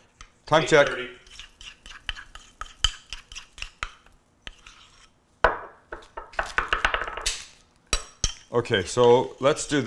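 A spoon scrapes and clinks against a ceramic bowl.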